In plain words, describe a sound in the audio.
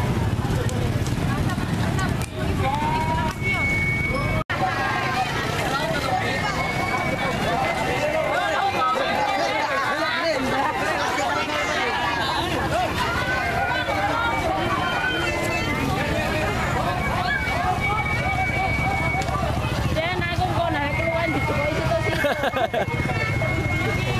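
A crowd of children and teenagers chatters and shouts outdoors.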